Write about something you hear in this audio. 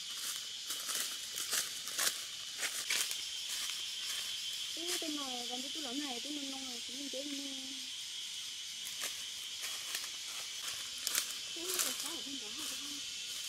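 Dry leaves crunch under footsteps.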